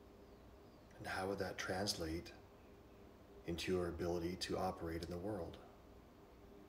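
A man speaks slowly and calmly, close to the microphone.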